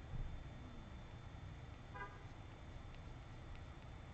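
A pencil softly scratches across paper.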